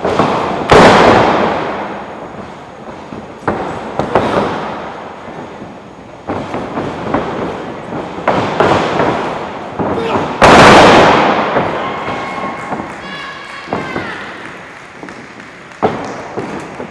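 Bodies slam hard onto a wrestling ring mat, echoing through a large hall.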